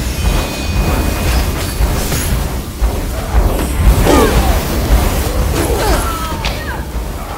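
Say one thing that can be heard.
Deep booming rumbles from fire blasts.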